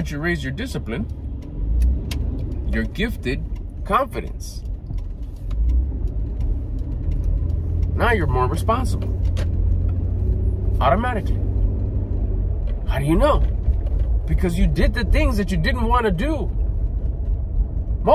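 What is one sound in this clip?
A car engine hums low and steadily while driving.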